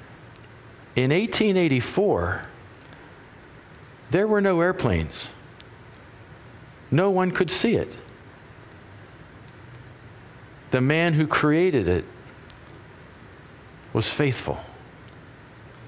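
A middle-aged man speaks calmly through a microphone in short phrases with pauses, in a room with some echo.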